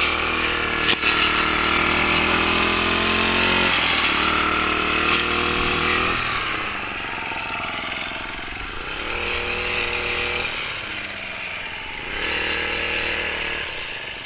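A petrol string trimmer engine whines loudly, revving up and dropping back to idle.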